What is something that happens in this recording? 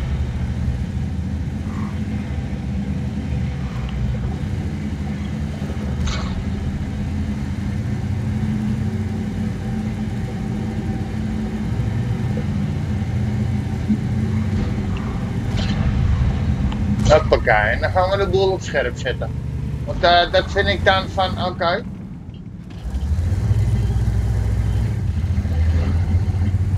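A tank engine rumbles low and steady as the tank drives.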